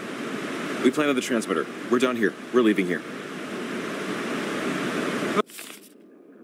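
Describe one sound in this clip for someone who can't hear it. Water rushes loudly down a waterfall.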